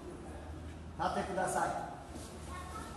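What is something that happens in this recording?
A group of children shout together in an echoing hall.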